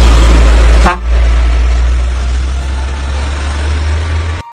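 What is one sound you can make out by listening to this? A truck rolls past, its tyres hissing on a wet road.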